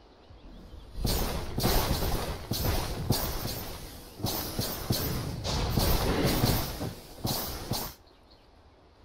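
Loud game combat effects clash and burst in quick succession.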